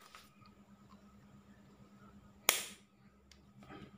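A plastic cap clicks as it is twisted off a small bottle.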